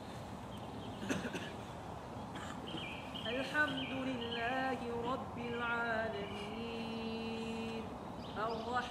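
A crowd of adults sings together outdoors at a distance.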